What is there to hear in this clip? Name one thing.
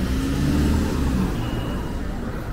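A car engine drives past close by.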